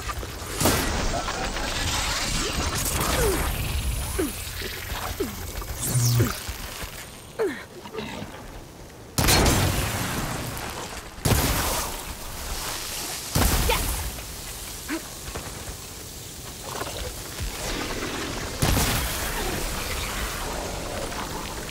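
A bow string twangs as arrows are shot.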